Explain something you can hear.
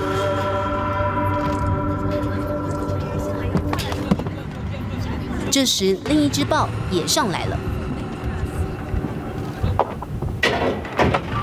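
A cheetah's paws thump softly on a vehicle's metal roof.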